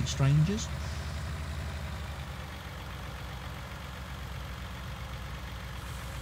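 A truck engine rumbles steadily as it drives along.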